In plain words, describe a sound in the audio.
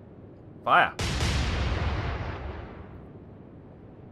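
Heavy ship guns fire with a loud boom that rumbles away.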